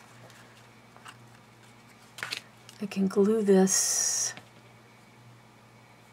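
Paper rustles softly as hands fold it.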